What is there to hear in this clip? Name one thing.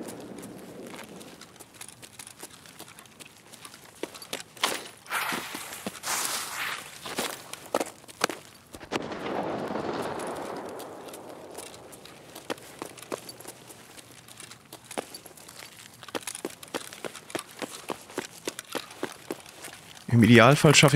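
Footsteps crunch steadily on hard ground.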